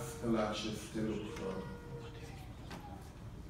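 A man speaks calmly into a microphone over a loudspeaker in an echoing hall.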